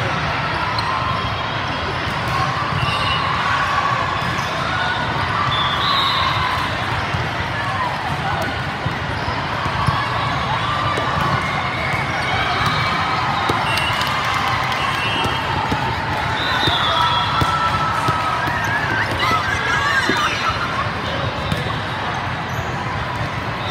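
A crowd of many voices chatters and echoes through a large hall.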